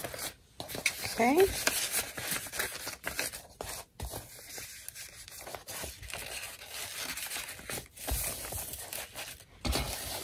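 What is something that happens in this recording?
Paper rustles and crinkles as hands fold and smooth it.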